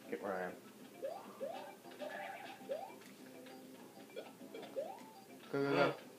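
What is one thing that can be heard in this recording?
A video game plays short rising jump sounds through a television speaker.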